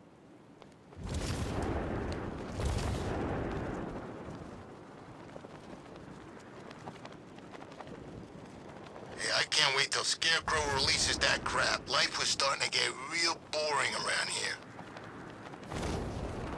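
Wind rushes loudly past a gliding figure.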